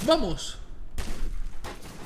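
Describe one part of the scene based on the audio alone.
A shotgun fires a loud blast.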